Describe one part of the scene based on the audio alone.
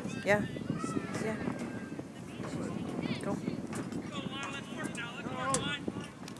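Young football players and coaches call out across an outdoor field.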